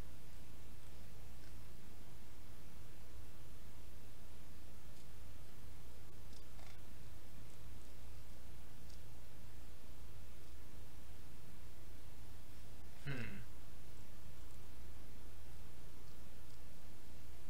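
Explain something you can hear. Water rumbles in a low, steady underwater murmur.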